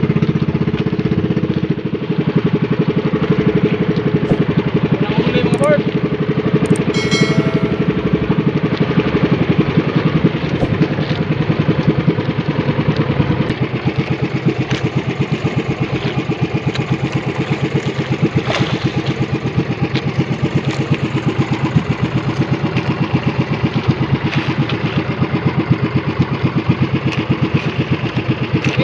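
A boat engine chugs steadily and close by.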